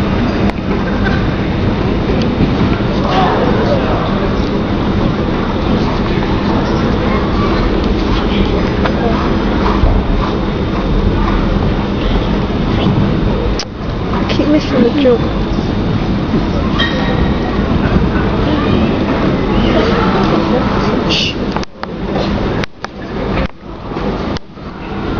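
A large indoor crowd murmurs and chatters in an echoing arena.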